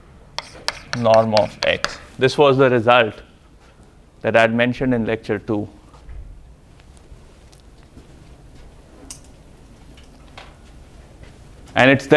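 A man speaks loudly and clearly in a large echoing room, lecturing.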